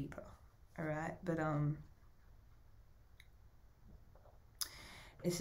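A young woman speaks calmly and close to a microphone, with pauses.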